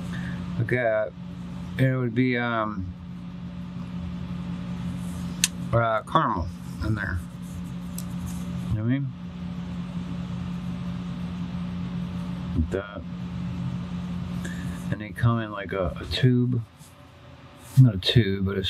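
A pen scratches lightly across paper.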